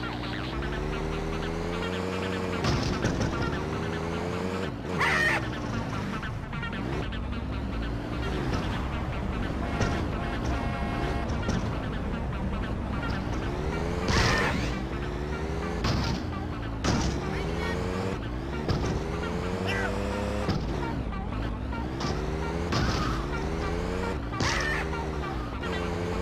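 A car engine revs up and down as a car drives and turns.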